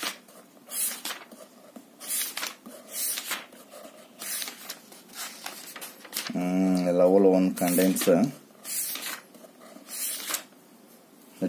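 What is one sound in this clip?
Paper pages rustle and flip as a book's pages are turned quickly.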